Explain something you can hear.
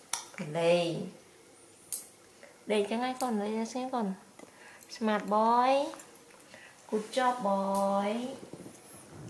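A young woman speaks close by in a high, animated voice.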